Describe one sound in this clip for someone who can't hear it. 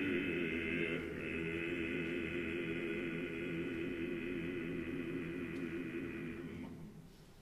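A male choir sings a long, sustained chord with vibrato.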